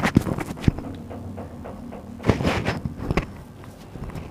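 A microphone rustles and knocks as it is clipped on.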